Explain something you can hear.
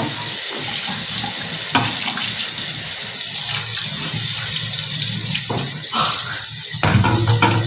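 Water runs from a tap and splashes onto a metal tray.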